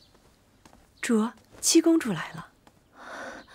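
A woman announces something calmly from a short distance.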